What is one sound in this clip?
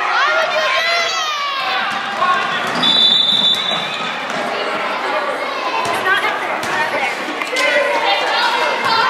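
Spectators shout and cheer in a large echoing gym.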